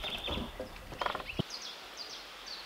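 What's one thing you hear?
A wooden beam knocks against logs as it is shifted by hand.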